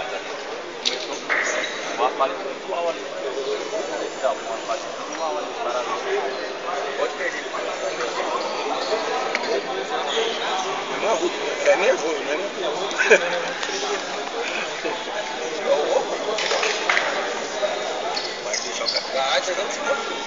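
A crowd of young men and women chatters and calls out nearby.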